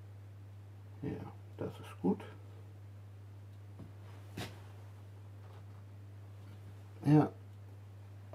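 A small metal tool clicks and taps on wood.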